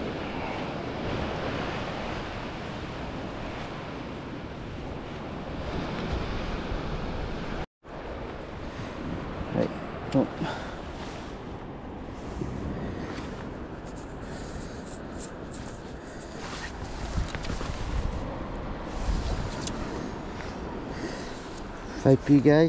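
Footsteps squelch on wet sand.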